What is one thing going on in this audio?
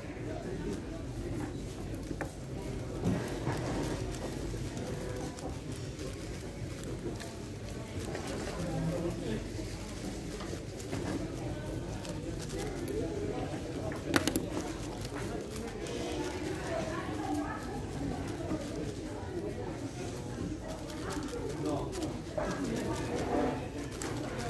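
A plastic puzzle cube clicks and clacks as it is turned quickly.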